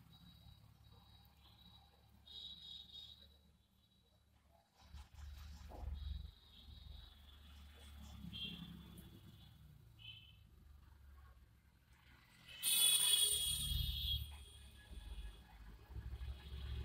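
Fingers softly pat and smooth a damp sheet mask against skin, close by.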